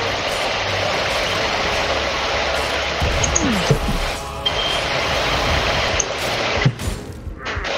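A sword swishes and clangs in a fight.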